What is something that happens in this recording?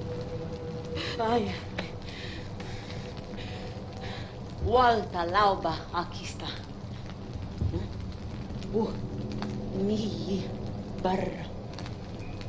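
A young woman speaks softly and closely.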